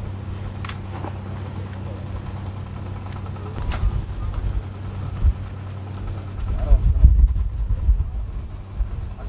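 Fishing nets rustle and drag.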